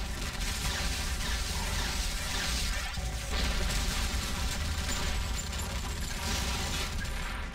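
Explosions boom and crackle in a game battle.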